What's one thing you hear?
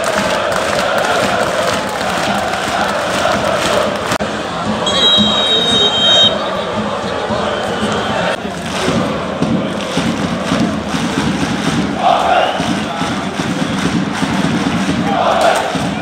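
A large stadium crowd chants and sings loudly, outdoors.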